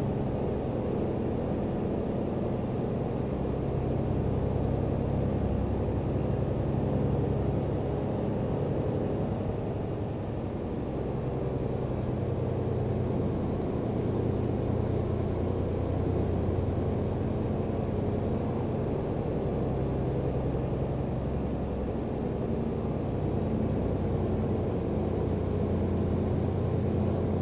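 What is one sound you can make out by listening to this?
A truck engine rumbles steadily from inside the cab, its pitch rising and falling a little.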